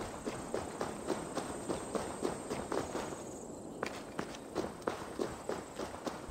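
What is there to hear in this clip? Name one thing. Footsteps crunch quickly on stone.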